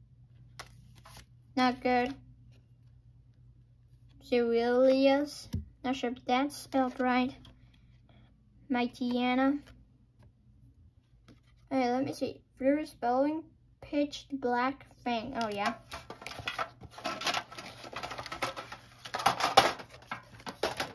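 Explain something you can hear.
Trading cards rustle and slide as hands sort through them.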